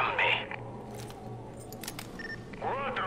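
A rifle is lowered with a brief metallic rattle.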